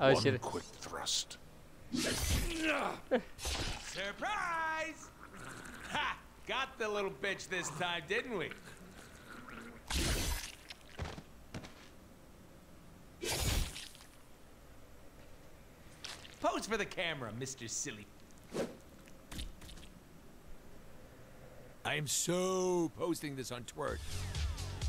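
A man speaks mockingly with animation.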